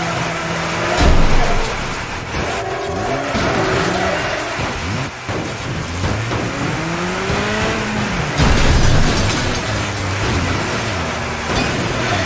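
Metal crashes and crunches as cars collide.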